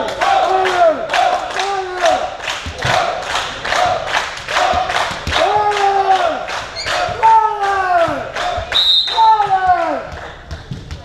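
Young men chant in a large echoing hall.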